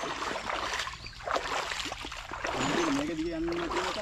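Bare feet wade through shallow water.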